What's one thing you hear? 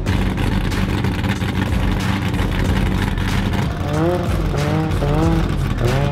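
A muscle car engine rumbles loudly at idle close by.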